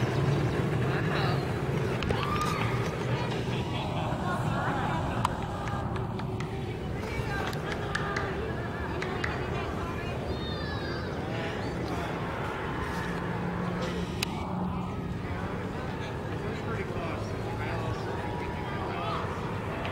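Small carts roll by on asphalt with a low rumble of wheels.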